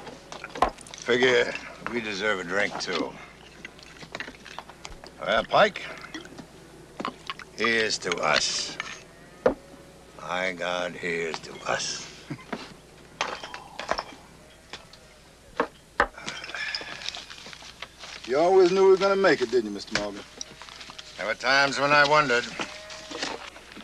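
A second man answers in a deep voice.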